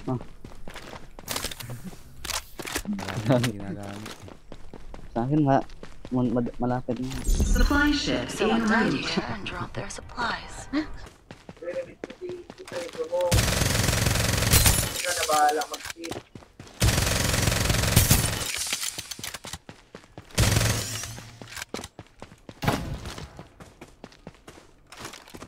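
Footsteps run quickly over dirt and grass.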